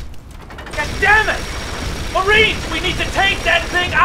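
A large mechanical walker fires its weapons.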